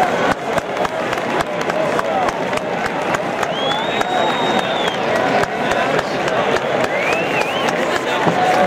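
Many people clap their hands.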